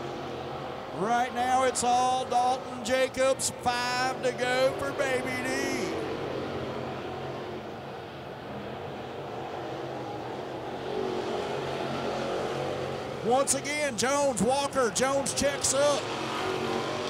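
A race car engine revs up and down sharply as it passes close by.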